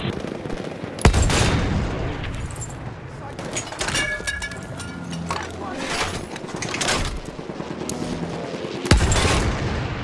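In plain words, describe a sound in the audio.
A field gun fires with a loud, sharp boom.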